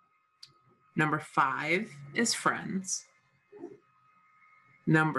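A middle-aged woman speaks calmly through a computer microphone in an online call.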